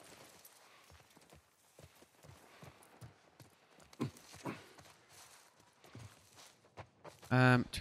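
Footsteps crunch slowly through grass.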